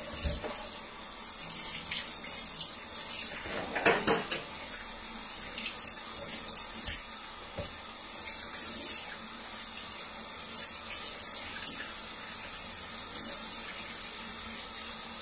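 Tap water runs steadily into a metal sink.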